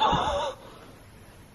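An elevator chime rings.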